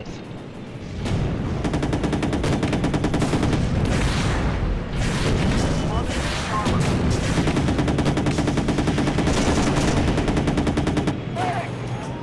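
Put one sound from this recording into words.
A tank cannon fires in loud, rapid bursts.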